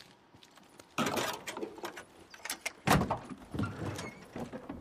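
A car hood is lifted open with a metal creak and thump.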